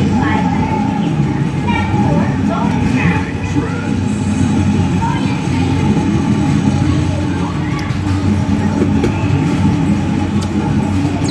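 Loud music plays from an arcade game's loudspeakers.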